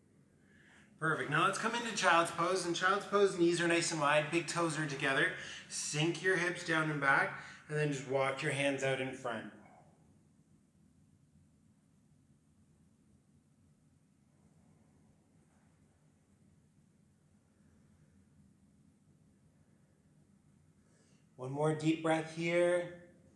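A man speaks calmly and clearly, close to a microphone, giving instructions.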